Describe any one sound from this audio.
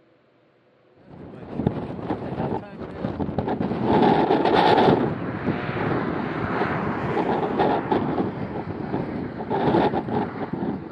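Strong wind blows outdoors, buffeting loudly.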